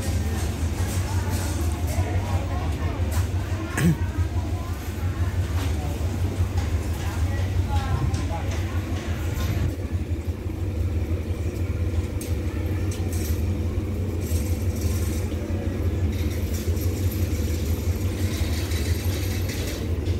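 A diesel train engine idles with a steady low rumble.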